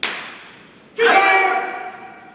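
A group of young men shouts together loudly.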